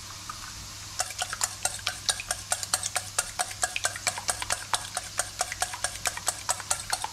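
A whisk beats eggs in a steel bowl.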